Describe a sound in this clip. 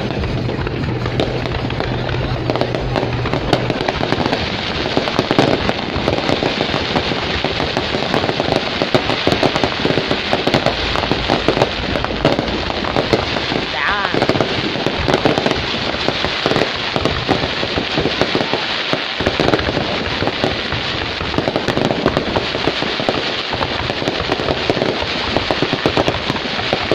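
Fireworks crackle and pop rapidly overhead.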